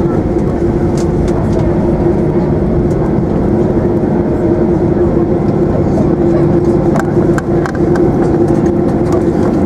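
The airliner's cabin rattles and thumps over bumps in the runway.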